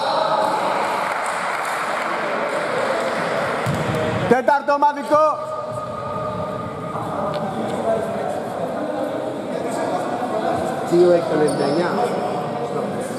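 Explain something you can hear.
Men call out to one another in a large echoing hall.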